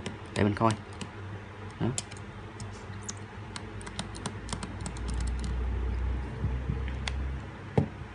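A small metal tool clicks and scrapes against a phone's casing.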